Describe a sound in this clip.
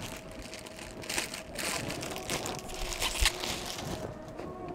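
A plastic wrapper crinkles as it is handled.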